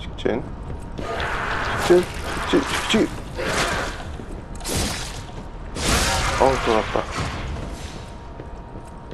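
A blade swishes and clangs in a fight.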